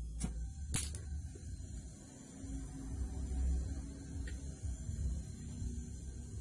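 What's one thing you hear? A gas torch hisses and roars steadily.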